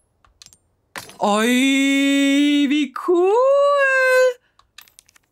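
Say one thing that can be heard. A young woman sings playfully close to a microphone.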